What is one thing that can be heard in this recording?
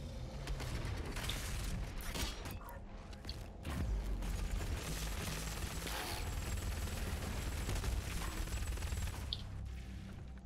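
Rapid gunfire blasts and booms.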